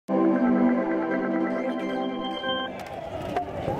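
A short musical jingle plays.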